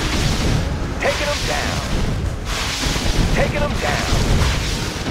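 A laser beam zaps and crackles.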